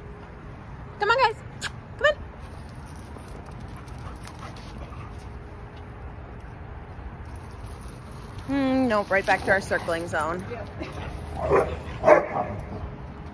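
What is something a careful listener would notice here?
A woman talks to dogs in a high, excited voice close by.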